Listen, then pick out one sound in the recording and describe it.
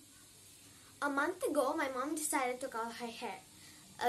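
A young girl speaks with animation close to a microphone.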